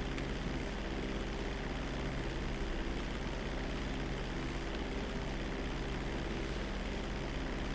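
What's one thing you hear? A propeller plane's engines drone in level flight.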